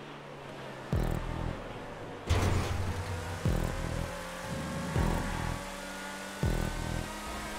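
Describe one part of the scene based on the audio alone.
A sports car's gear shifts thump in one after another.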